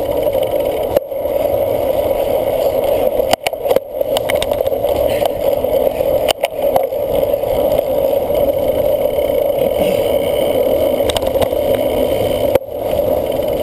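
A cyclocross bike rattles over bumps.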